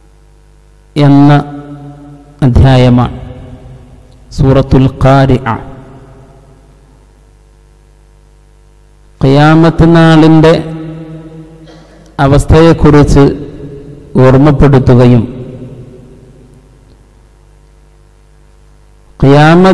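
A man chants melodically into a microphone in phrases, with echo trailing off after each.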